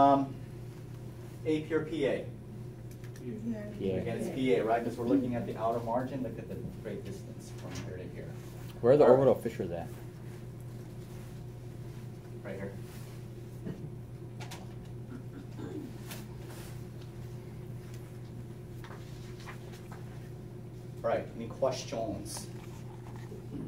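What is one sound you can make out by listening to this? A man speaks calmly, lecturing, in bursts.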